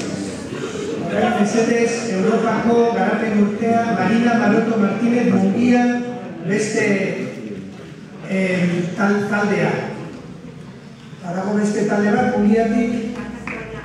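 A woman speaks calmly through a microphone and loudspeakers in a large hall.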